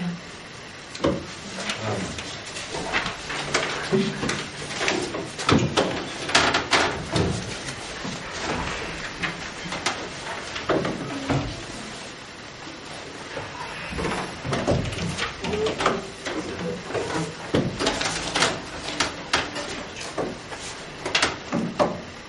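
Acoustic guitars are plucked in a gentle, uneven rhythm.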